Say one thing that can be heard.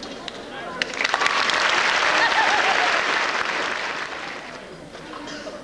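A large audience claps and cheers loudly, then dies down.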